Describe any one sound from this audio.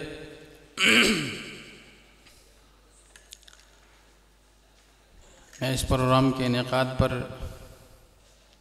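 An elderly man speaks forcefully into a microphone, heard through loudspeakers with echo.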